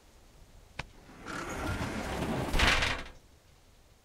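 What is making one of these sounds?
A metal gate rattles open.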